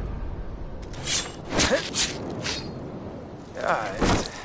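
A knife tears wetly through an animal's hide.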